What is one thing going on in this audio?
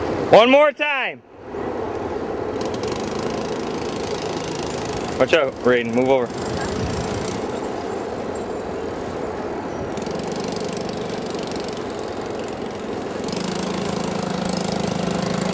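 A small motor whines steadily, revving up and down now and then.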